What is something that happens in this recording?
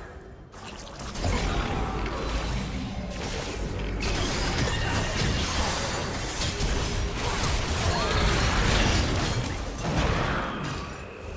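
Magic spells blast, whoosh and crackle during a fierce fight.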